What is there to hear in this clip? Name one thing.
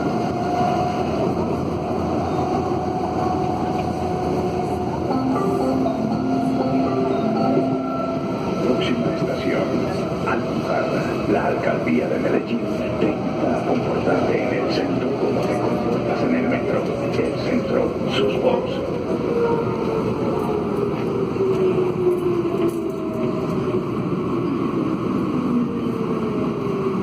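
Busy city traffic rumbles steadily below.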